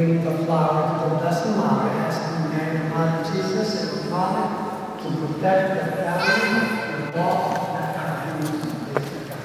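A man sings slowly in a large echoing hall.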